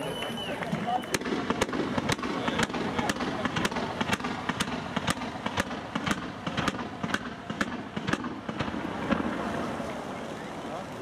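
Fireworks crackle and pop in rapid bursts.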